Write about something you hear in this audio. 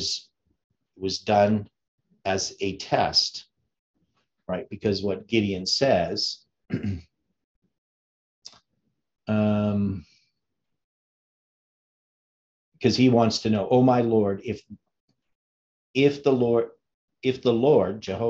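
An elderly man speaks calmly and slowly into a close microphone, reading out.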